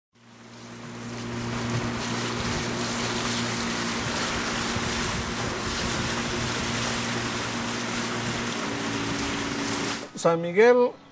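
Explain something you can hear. Water rushes past a moving boat's hull.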